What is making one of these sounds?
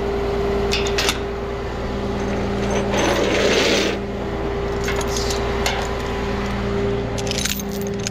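A ratchet strap clicks and rattles.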